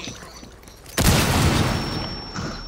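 A loud blast goes off suddenly.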